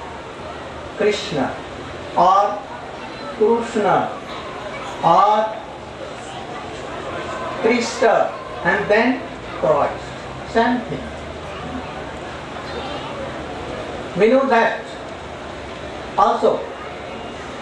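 An elderly man speaks slowly and calmly into a microphone, with pauses between phrases.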